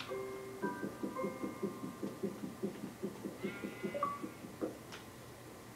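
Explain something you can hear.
Rhythmic crunching thuds of digging come from a video game played through television speakers.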